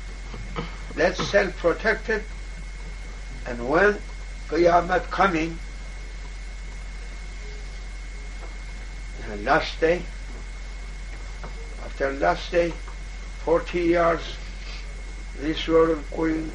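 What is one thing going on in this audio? An elderly man speaks slowly and calmly, with long pauses.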